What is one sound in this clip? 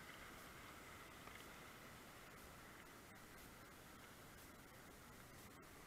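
A kayak paddle splashes in the water.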